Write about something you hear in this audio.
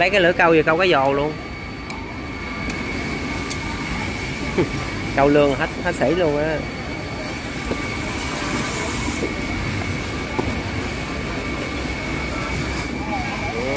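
A knife cuts through a fish on a wooden board.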